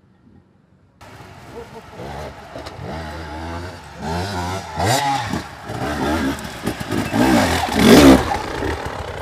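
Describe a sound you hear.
An enduro dirt bike revs hard as it climbs a steep slope.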